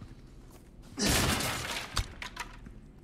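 A blade swishes and strikes rock.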